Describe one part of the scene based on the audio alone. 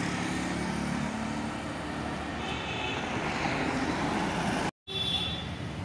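Vehicles drive past on a street with a steady traffic hum.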